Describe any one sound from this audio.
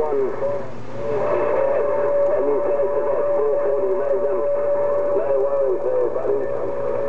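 A steady whistling tone sounds through a radio loudspeaker.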